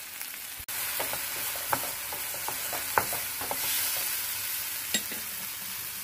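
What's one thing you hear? A wooden spatula scrapes and taps against a frying pan.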